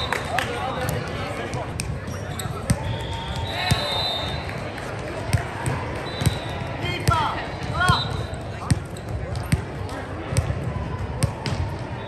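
Volleyballs thump and smack on hands and the floor.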